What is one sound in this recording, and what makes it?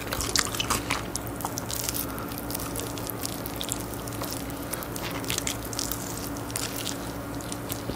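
A man bites and chews crunchy fried chicken close to a microphone.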